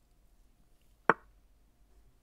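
A chess piece clicks sharply as a move is made.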